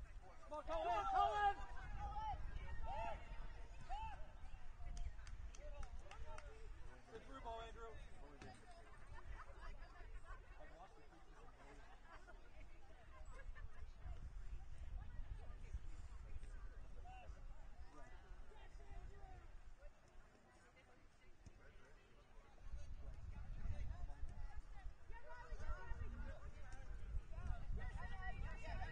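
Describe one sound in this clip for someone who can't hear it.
Players shout to each other across an open field at a distance.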